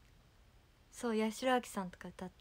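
A young woman speaks brightly and close to a microphone.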